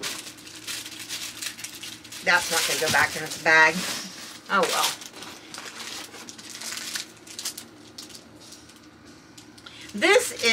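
Plastic packaging crinkles and rustles in a woman's hands.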